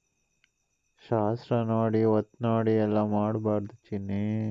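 A young man talks with animation over a phone line.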